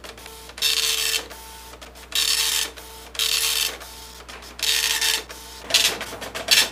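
A dot-matrix printer rattles in bursts.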